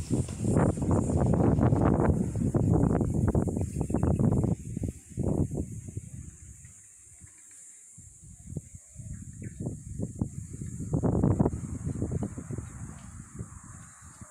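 Wind gusts roar against the microphone outdoors.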